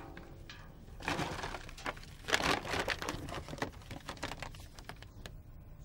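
Paper rustles and crinkles loudly as it is unfolded.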